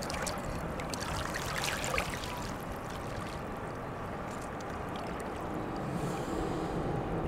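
Water splashes and swishes as people move about in shallow water.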